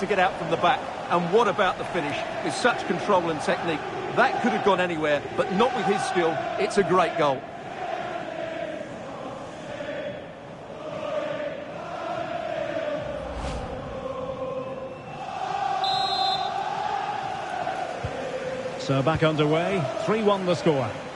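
A stadium crowd roars and cheers steadily in the distance.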